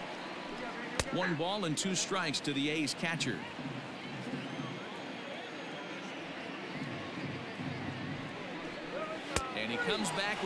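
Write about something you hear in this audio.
A baseball bat cracks sharply against a ball.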